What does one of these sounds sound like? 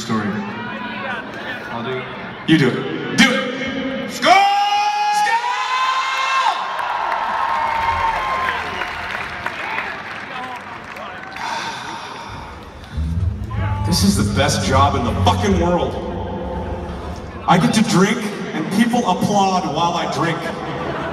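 A band plays live electric guitars and drums, heard from far back in a large echoing arena.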